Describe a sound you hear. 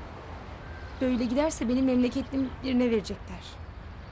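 A young woman speaks softly and close by.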